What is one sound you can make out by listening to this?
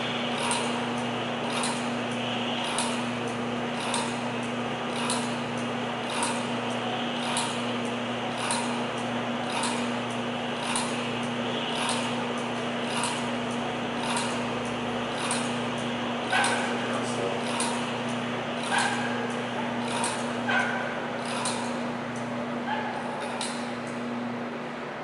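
A machine clicks in a steady, quick rhythm.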